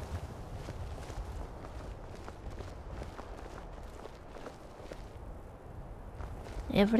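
Footsteps crunch on a stony path.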